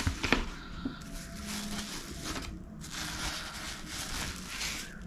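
Plastic wrap crinkles close by.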